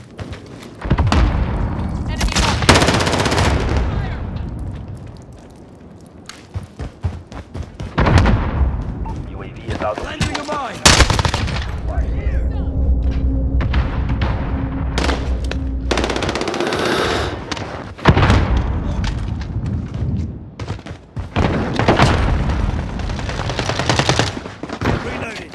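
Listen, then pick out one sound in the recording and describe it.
An automatic rifle fires loud, rapid bursts.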